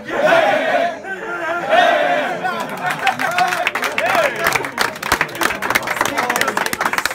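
A group of young men chant and sing loudly together in a room.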